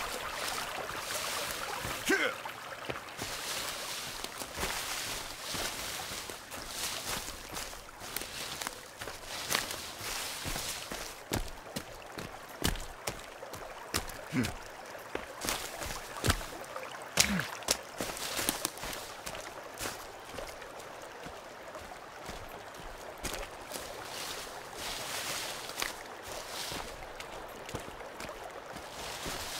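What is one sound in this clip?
Ferns and bushes rustle and swish as someone pushes through them.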